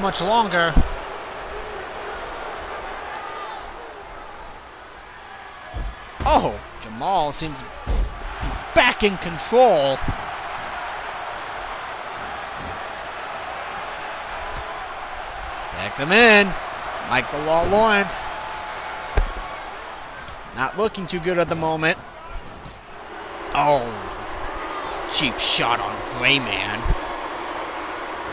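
A large crowd roars steadily in a big arena.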